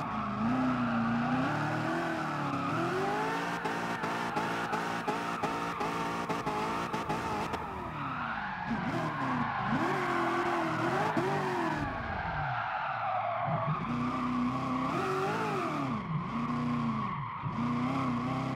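Tyres screech as a car slides through corners.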